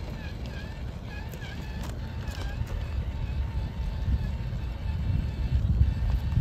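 Loose rubble crunches and rattles under a toy truck's tyres.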